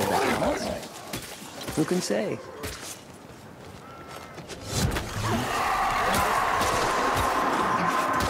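A blade slashes and thuds into flesh.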